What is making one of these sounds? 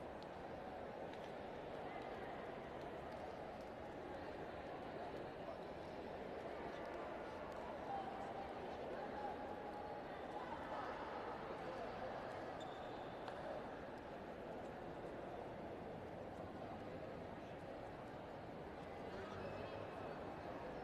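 Crowd chatter echoes through a large hall.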